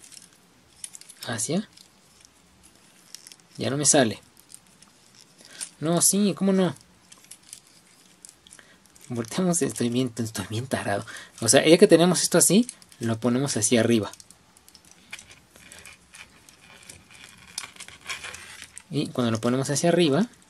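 Small plastic toy parts click and creak as they are twisted into place.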